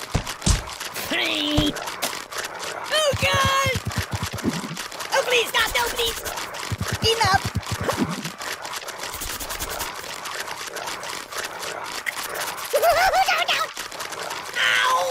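Cartoon rabbits squeak and squeal in short bursts.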